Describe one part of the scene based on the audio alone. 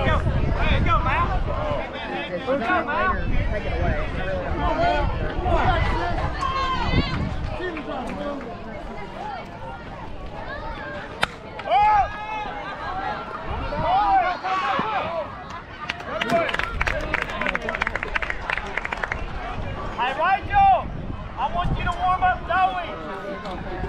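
Young girls shout and cheer across an open field.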